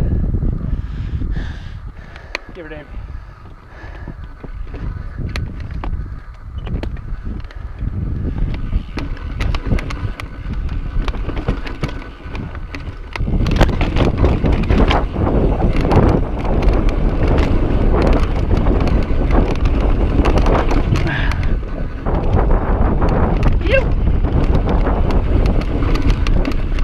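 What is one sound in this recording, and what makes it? A bike rattles and clatters over bumps.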